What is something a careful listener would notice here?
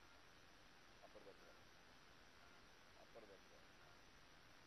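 A man speaks briefly into a microphone, with short pauses.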